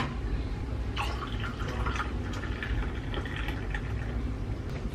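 Coffee pours into a glass of ice and milk.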